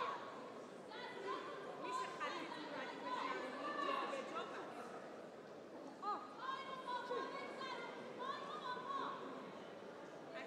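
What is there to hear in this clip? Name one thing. A woman referee calls out firmly.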